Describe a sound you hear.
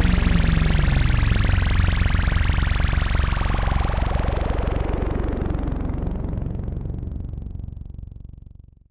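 An analog modular synthesizer drones with a rapid pulsing buzz and sweeping tones, then fades out.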